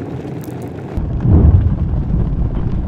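A gas burner flame roars softly.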